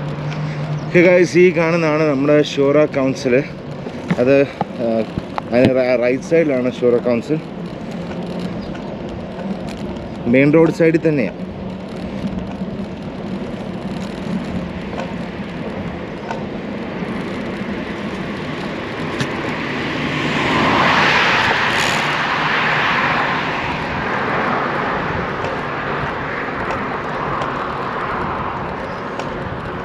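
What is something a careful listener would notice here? Wind rushes past while riding a bicycle outdoors.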